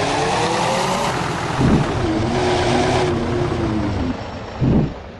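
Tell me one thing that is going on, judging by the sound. A bus engine hums and whines as it drives.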